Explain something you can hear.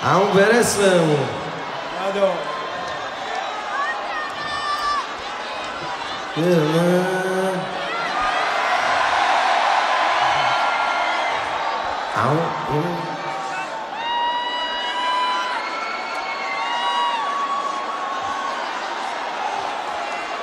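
A man sings through loudspeakers in a large echoing arena.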